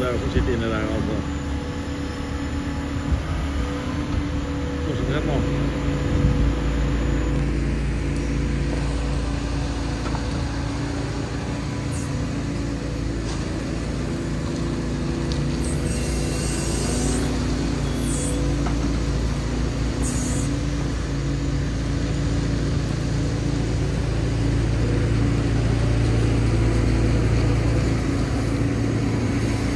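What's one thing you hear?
An excavator's diesel engine rumbles steadily nearby.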